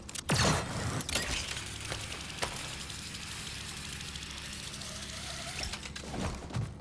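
A cable whirs steadily as a character slides along a zipline.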